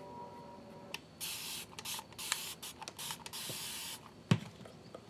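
A plastic squeeze bottle hisses and sputters as liquid is squeezed out.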